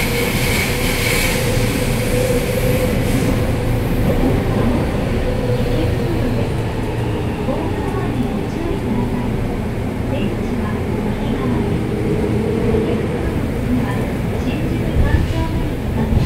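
A train rumbles and rattles steadily along the track.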